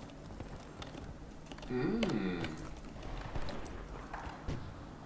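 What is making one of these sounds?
Footsteps thud on wooden floorboards.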